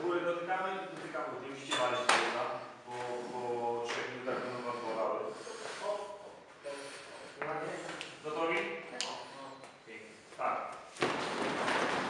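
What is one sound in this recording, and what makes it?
A man speaks loudly to a group.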